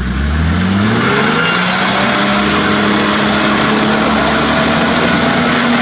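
An engine revs hard as a vehicle drives through deep mud.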